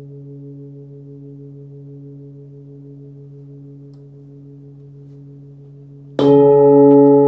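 A metal singing bowl hums softly with a steady low ringing tone.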